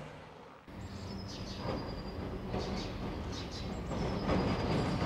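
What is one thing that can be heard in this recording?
Tram wheels squeal faintly on the rails.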